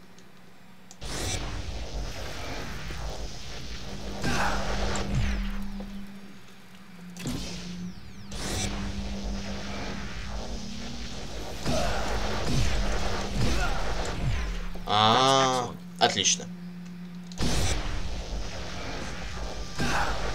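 Energy beams crackle and buzz loudly in bursts.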